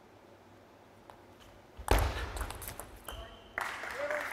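Ping-pong paddles strike a ball back and forth.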